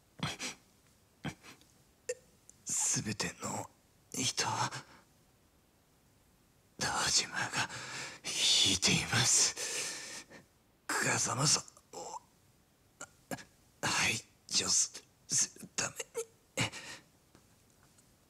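A wounded man speaks weakly and haltingly, with pained gasps.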